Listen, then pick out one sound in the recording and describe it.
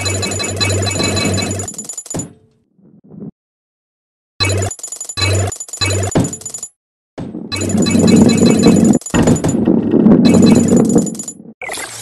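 Coins chime as they are collected.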